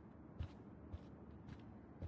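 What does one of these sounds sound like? Footsteps tap softly on a hard floor.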